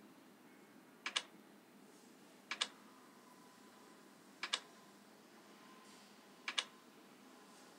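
Puzzle pieces snap into place with a short double click.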